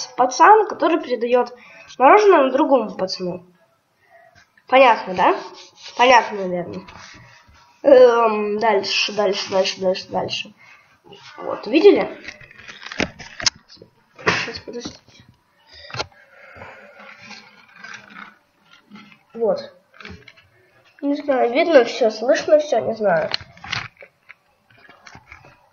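A young child talks with animation close to a microphone.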